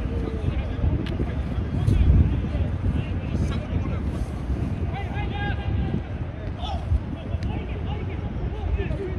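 Young men shout to each other across an open field in the distance.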